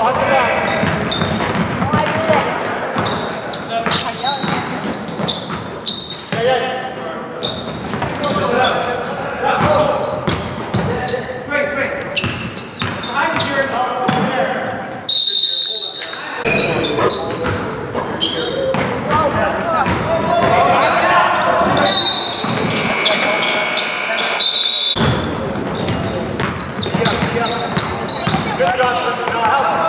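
A crowd of spectators chatters and calls out in an echoing hall.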